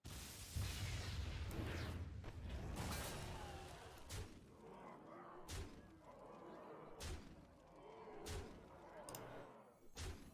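A man talks into a close microphone with animation.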